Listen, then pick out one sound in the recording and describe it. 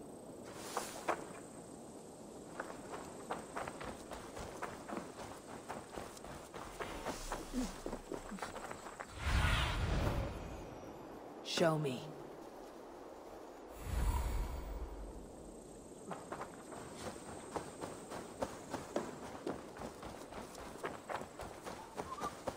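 Footsteps run quickly over earth and wooden boards.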